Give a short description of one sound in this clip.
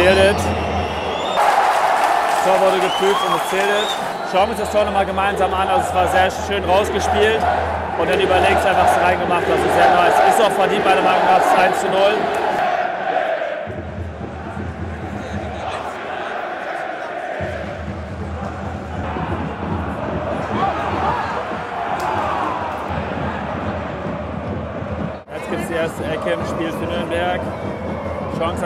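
A large crowd chants and sings loudly in an open stadium.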